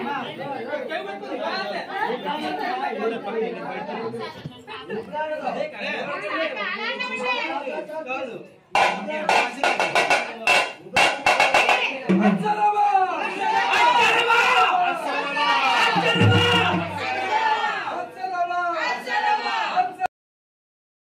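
A crowd of women talk and call out loudly all at once, close by.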